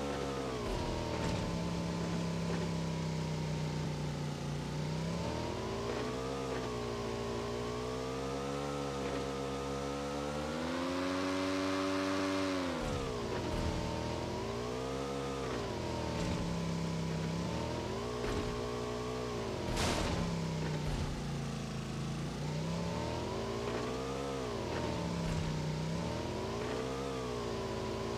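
A motorcycle engine hums steadily and rises and falls in pitch as it speeds up and slows down.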